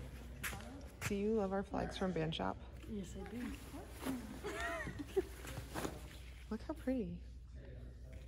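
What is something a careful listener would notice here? A young woman talks casually up close.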